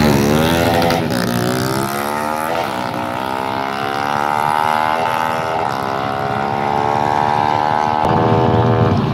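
A motorcycle speeds away, its engine rising in pitch as it shifts gears.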